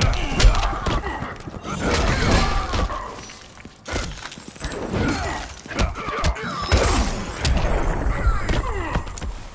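Heavy punches and kicks land with loud thuds and cracks.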